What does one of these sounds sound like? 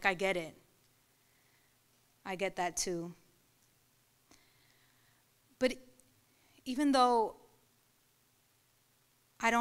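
A young woman reads aloud slowly into a microphone, with long pauses.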